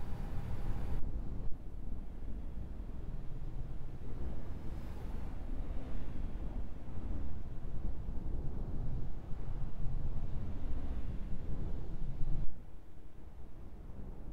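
Highway traffic roars past steadily.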